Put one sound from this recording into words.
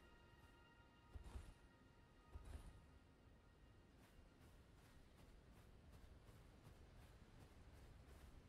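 Footsteps swish and rustle through tall grass.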